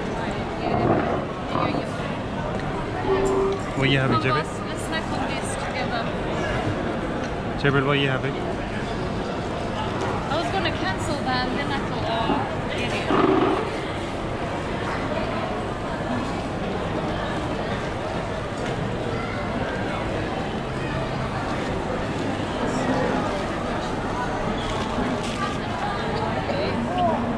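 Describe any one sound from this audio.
A crowd murmurs and chatters all around in a large, busy hall.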